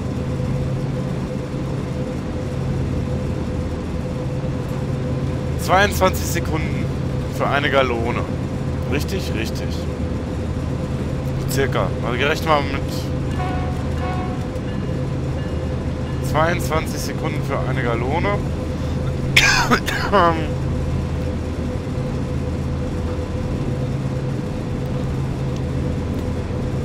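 A locomotive engine drones steadily.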